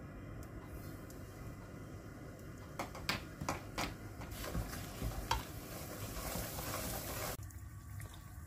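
Hot oil sizzles in a pan.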